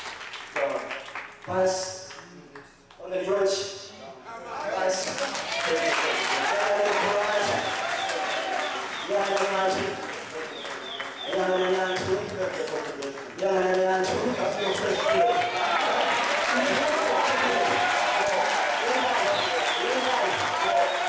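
A man preaches loudly through a microphone in a large echoing hall.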